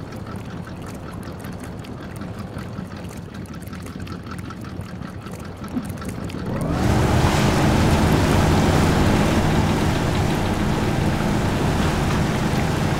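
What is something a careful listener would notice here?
An engine rumbles and revs as a truck drives.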